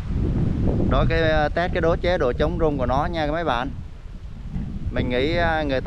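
A man speaks calmly and close to the microphone.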